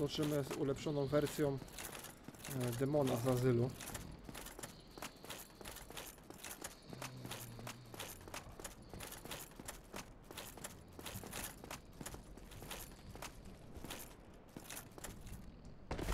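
Armoured footsteps clank steadily on stone.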